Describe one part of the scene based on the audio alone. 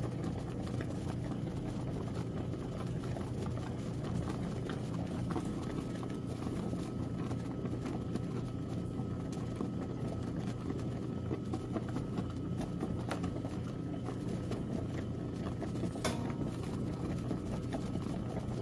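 A washing machine motor hums low and steadily.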